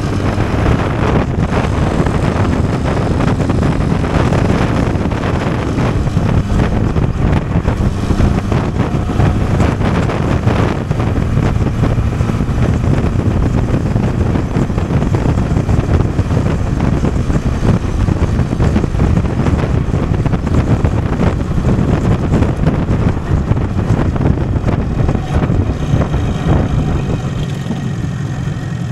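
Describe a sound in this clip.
A motorcycle engine hums steadily while riding fast.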